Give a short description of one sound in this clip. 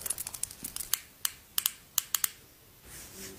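Tapping clicks on a pen cap sound close to a microphone.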